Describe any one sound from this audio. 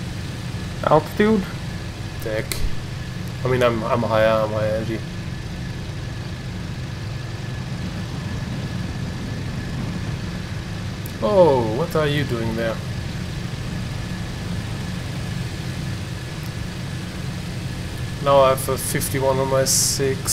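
A plane's engine drones steadily.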